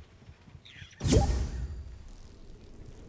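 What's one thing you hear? A short notification chime sounds.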